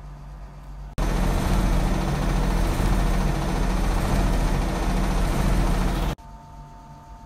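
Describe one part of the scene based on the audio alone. A washing machine spins fast with a loud, steady roar, then abruptly stops.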